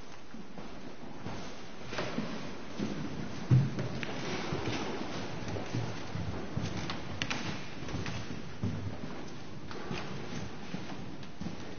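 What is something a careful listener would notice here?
Footsteps shuffle softly across the floor.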